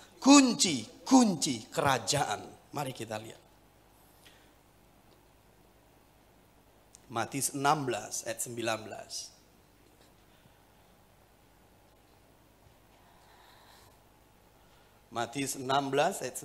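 A middle-aged man speaks with animation through a microphone, with pauses between phrases.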